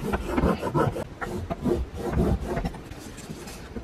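A tool scores paper with scratching strokes.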